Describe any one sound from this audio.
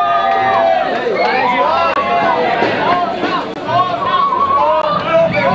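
Several young men talk and shout over one another close by.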